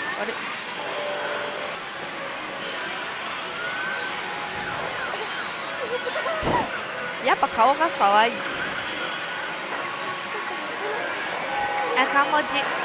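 A slot machine plays bright electronic music and sound effects.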